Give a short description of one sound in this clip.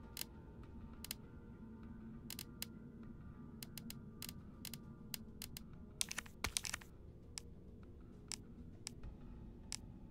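Short menu clicks tick again and again as a cursor moves through a list.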